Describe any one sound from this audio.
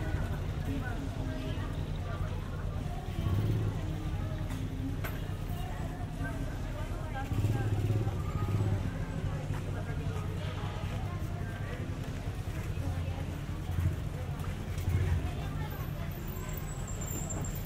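People chatter all around on a busy street.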